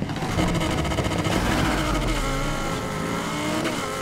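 A sports car engine roars while racing.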